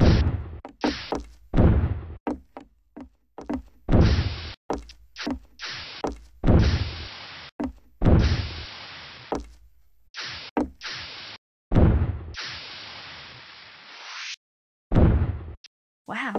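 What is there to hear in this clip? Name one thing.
Heavy thuds of a player landing jumps come in quick succession, each trailing off in a hiss.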